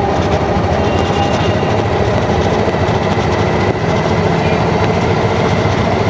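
Tyres roll and hum on the road surface.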